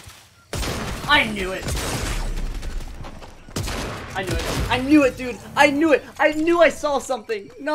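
A teenage boy shouts excitedly into a close microphone.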